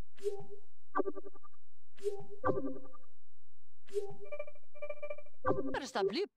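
Short bright chimes ring as menu options pop up.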